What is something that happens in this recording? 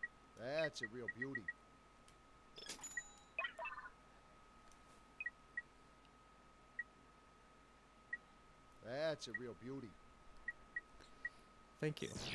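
Short electronic beeps blip as a menu is scrolled through.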